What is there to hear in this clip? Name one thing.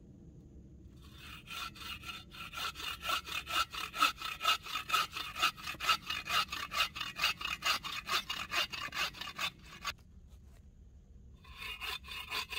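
A hand saw cuts back and forth through wood in quick, steady strokes.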